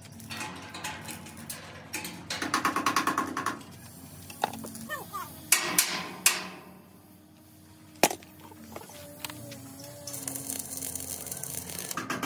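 Metal clanks and taps against a steel frame.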